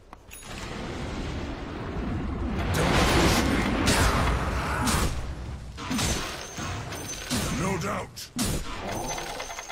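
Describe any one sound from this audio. Magic blasts and impacts burst in a video game.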